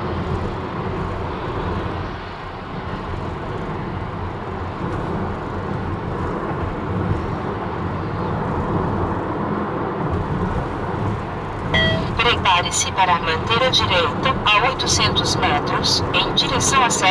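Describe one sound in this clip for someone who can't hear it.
A car's engine and tyres rumble steadily from inside the car on a fast road.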